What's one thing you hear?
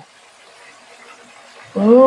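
Beaten egg pours into a hot pan.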